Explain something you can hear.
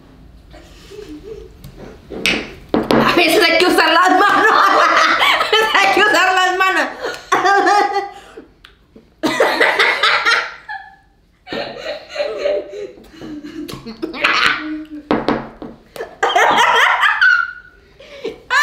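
A young woman chews and slurps messily.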